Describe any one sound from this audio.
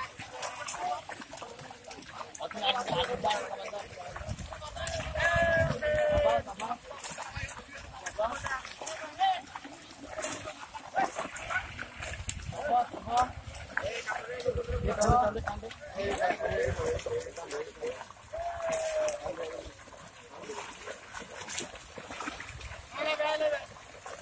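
Water splashes as men wade and haul a net.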